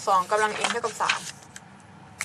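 Paper rustles as a sheet is moved.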